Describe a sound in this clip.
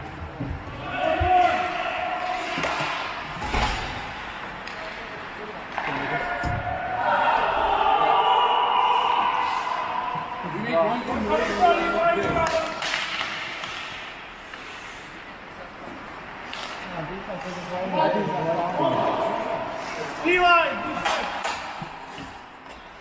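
Men call out to each other across an echoing rink.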